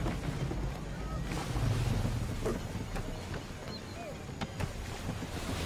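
Wooden planks and rigging creak and knock.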